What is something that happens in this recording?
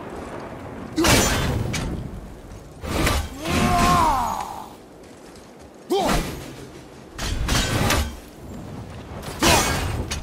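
An axe strikes metal with a loud ringing clang.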